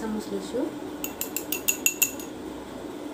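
A metal spoon clinks rapidly against a glass.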